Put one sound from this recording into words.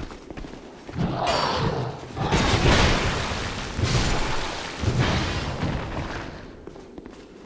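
Heavy weapon blows clash and thud loudly in a fight.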